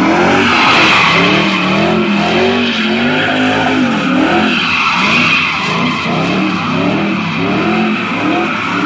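A car engine revs hard, its pitch rising and falling.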